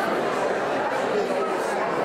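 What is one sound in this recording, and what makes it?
A man and a woman laugh nearby.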